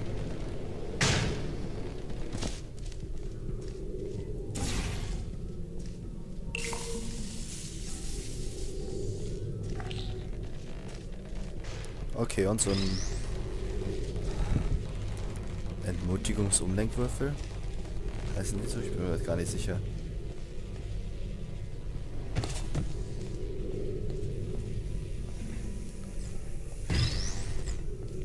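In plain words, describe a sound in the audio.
A portal gun fires with sharp electronic zaps.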